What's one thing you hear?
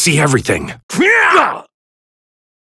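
A punch lands with a heavy thud.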